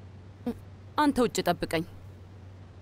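A woman speaks briefly and curtly, close by.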